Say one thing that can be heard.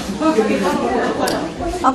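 A woman talks calmly in a room.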